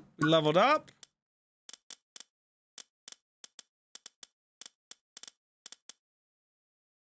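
Soft game menu clicks tick one after another.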